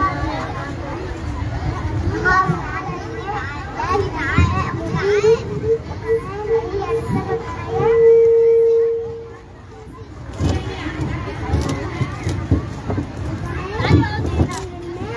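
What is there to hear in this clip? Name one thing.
Children chatter and shout excitedly all around, outdoors.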